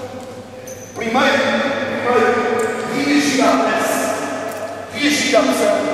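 A man speaks loudly and with animation in a large echoing hall.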